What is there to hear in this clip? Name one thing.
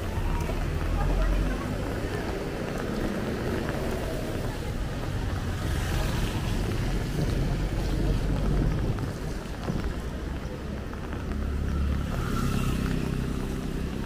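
A motorbike engine buzzes nearby.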